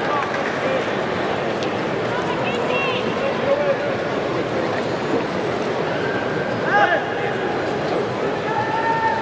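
A large crowd murmurs and cheers throughout a big echoing arena.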